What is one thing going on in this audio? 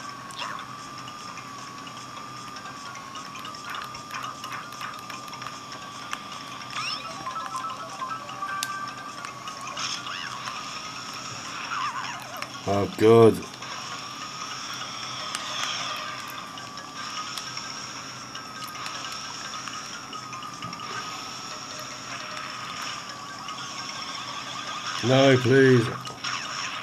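A video game's kart engine hums steadily through a small speaker.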